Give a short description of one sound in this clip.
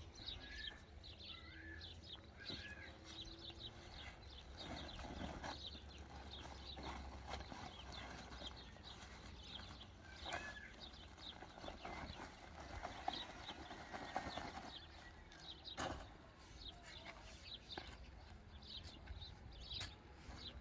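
A shovel scrapes and scoops sand.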